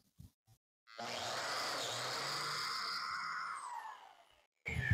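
A power tool whirs briefly as it cuts into wood.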